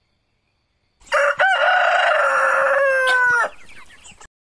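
A rooster crows loudly.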